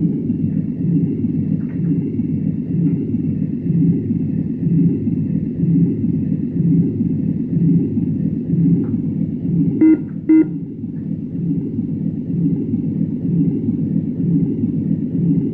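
A jet engine roars steadily with a low, pulsing rumble.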